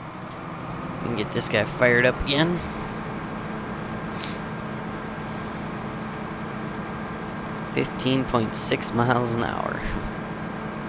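A man speaks calmly into a headset microphone, close up.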